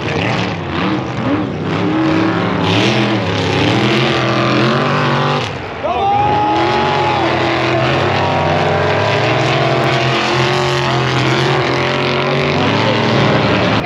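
Off-road vehicle engines roar and rev loudly nearby.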